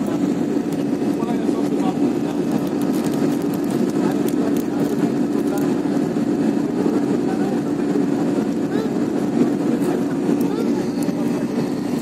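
A jet engine roars steadily from inside an airplane cabin.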